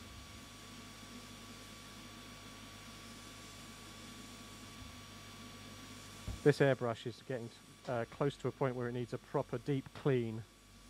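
An airbrush hisses softly as it sprays.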